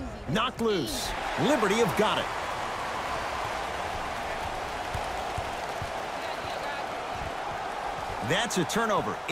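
A crowd roars and cheers in a large echoing arena.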